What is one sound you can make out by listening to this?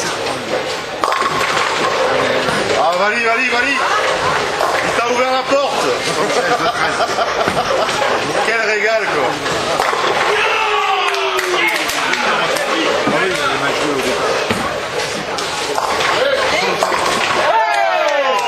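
Bowling pins crash and scatter.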